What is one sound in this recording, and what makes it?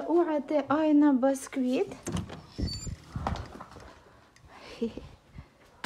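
A door handle clicks and a glass door slides open.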